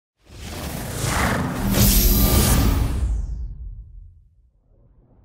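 A console startup chime swells and fades.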